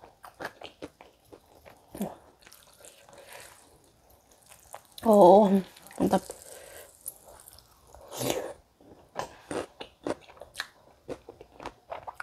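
Food crackles and rustles as fingers pick at a plate.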